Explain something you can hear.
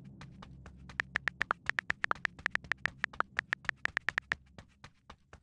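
Keyboard keys click rapidly during typing.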